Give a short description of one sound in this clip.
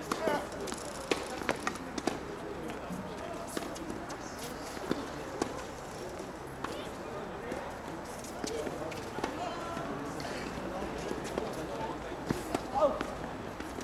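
A tennis ball is struck back and forth with rackets, with sharp pops outdoors.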